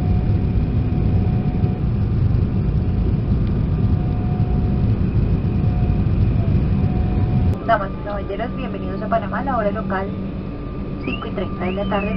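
Jet engines rumble steadily, heard from inside an airliner cabin.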